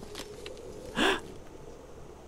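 Ice cracks sharply underfoot.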